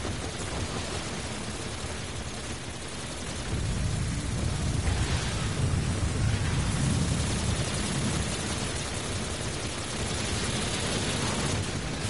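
Game explosions boom with a deep rumble.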